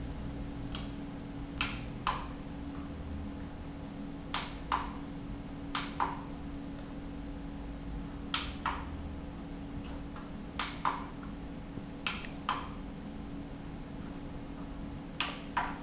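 Buttons on a stereo click sharply, again and again.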